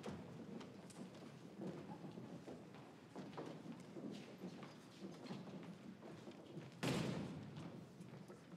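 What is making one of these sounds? Footsteps shuffle across a wooden stage.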